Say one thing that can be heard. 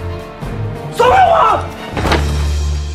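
A young man shouts in distress.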